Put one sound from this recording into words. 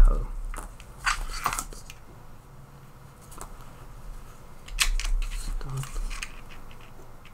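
Small plastic parts click and tap on a hard surface.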